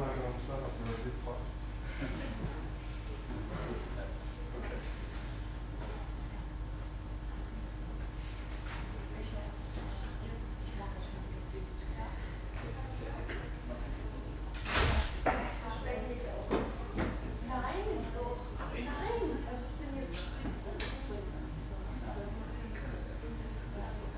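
Young women talk quietly among themselves nearby in a large room.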